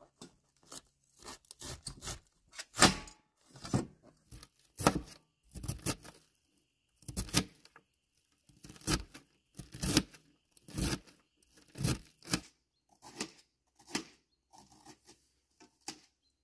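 A knife chops through cabbage in steady, repeated strokes.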